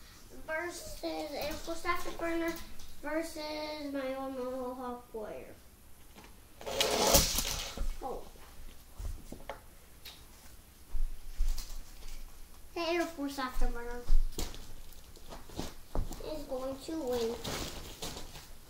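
A young boy talks with excitement close by.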